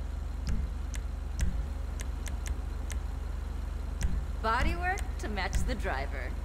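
Short soft clicks sound at an uneven pace.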